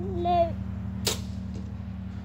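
A compound bow releases an arrow with a sharp snap.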